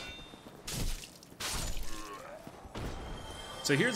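Swords clash and strike in combat.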